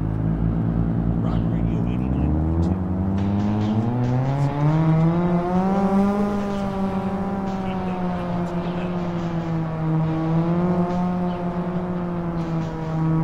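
A car engine hums and rises in pitch as the car speeds up, then holds steady.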